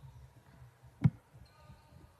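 A basketball thuds against a backboard.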